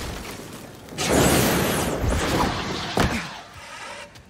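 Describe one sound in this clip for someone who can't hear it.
A fire extinguisher sprays with a loud hiss.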